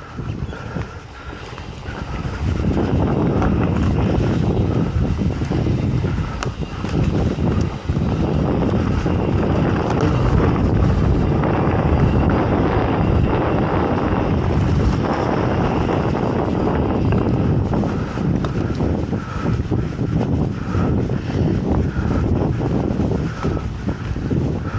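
Mountain bike tyres crunch over a dirt trail covered in dry leaves.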